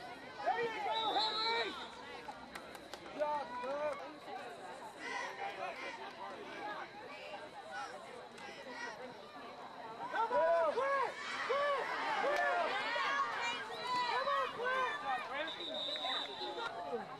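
A referee's whistle blows shrilly.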